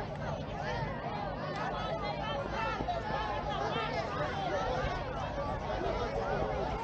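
A crowd of men and women chatters outdoors at a distance.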